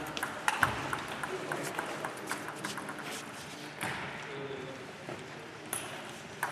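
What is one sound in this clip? A ping-pong ball clicks and bounces on a table in an echoing hall.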